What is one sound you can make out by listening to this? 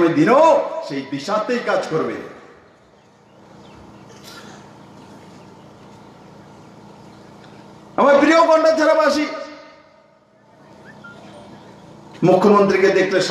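A man speaks forcefully into a microphone through loudspeakers, with an echo outdoors.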